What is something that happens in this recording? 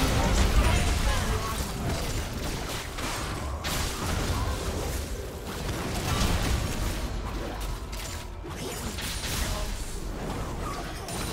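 Game spell effects and weapon strikes clash and crackle in a busy fight.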